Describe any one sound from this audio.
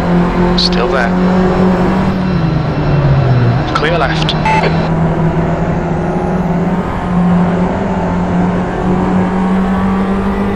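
A small four-cylinder hatchback engine drones at racing speed.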